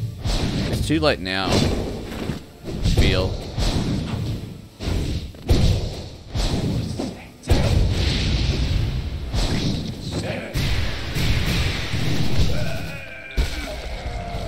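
Sharp blade slashes and heavy impacts clash in quick bursts.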